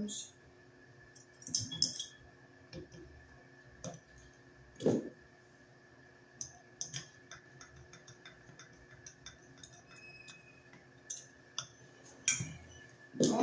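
Small metal parts click and tap as wires are fastened.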